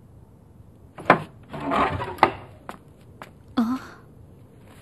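A wooden door creaks and swings open.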